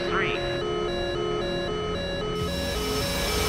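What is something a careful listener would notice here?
A cockpit warning tone beeps in a steady repeating pattern.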